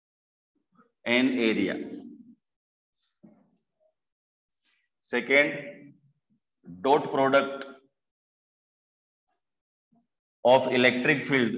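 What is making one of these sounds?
A middle-aged man speaks calmly in short bursts, close to a microphone.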